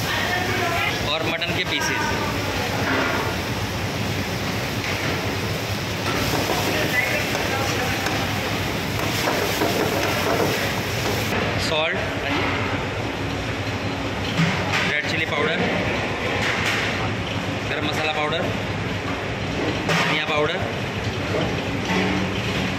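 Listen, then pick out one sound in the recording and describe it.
Food sizzles loudly in a hot pan.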